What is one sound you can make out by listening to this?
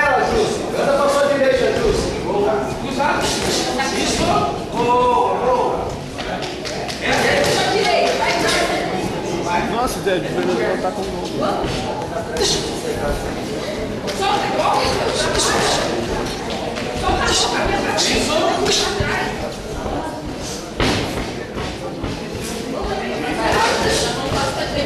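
A crowd of spectators shouts and cheers throughout, echoing in a large hall.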